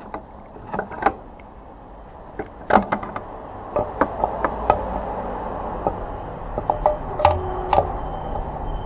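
Fingers tap and scrape against a metal engine cover with light clicks.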